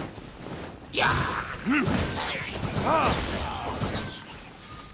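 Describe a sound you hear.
A sword swings with a fiery whoosh and a crackling burst of flames.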